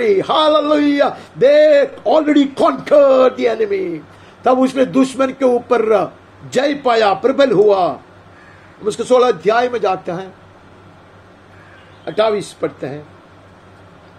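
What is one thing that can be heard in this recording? A middle-aged man speaks with animation close to a clip-on microphone.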